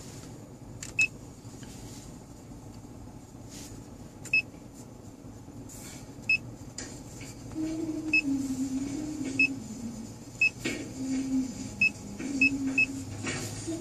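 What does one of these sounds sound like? A touchscreen beeps briefly each time a finger taps it.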